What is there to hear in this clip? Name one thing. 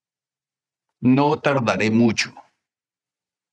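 A middle-aged man speaks clearly and calmly into a close microphone.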